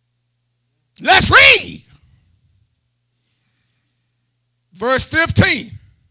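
A middle-aged man speaks loudly and with emphasis through a microphone in short bursts.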